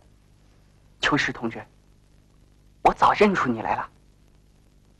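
A young man speaks in a low, calm voice nearby.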